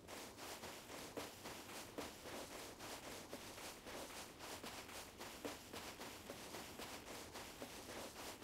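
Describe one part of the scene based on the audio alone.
Footsteps crunch quickly over dry grass and sand.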